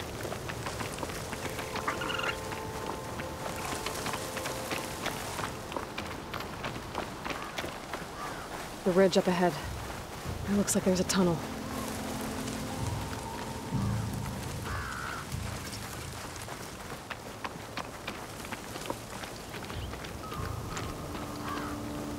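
Footsteps run through dry grass.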